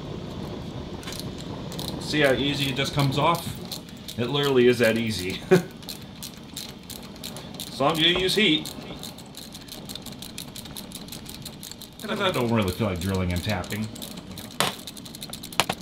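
A ratchet wrench clicks as it turns a bolt, faster toward the end.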